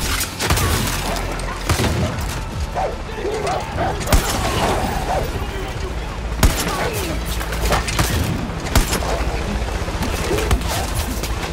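Loud gunshots ring out every few seconds.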